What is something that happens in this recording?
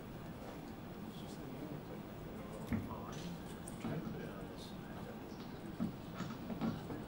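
Several men talk quietly at a distance.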